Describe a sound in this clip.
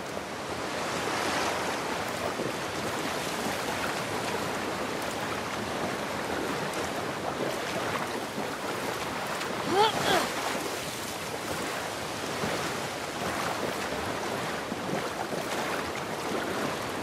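Water sloshes and splashes as a person wades through it.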